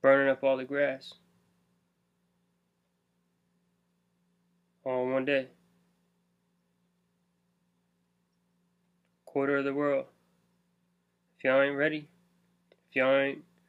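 A young man speaks calmly in short bursts, close to a microphone.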